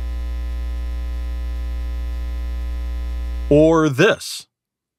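A loudspeaker gives off a steady low electrical hum.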